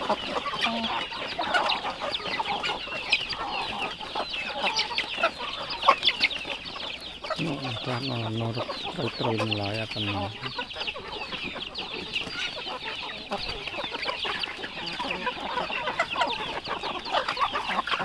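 Many chickens chirp and cluck busily outdoors.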